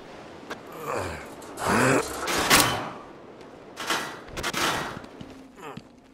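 A metal vent cover is wrenched loose and clangs.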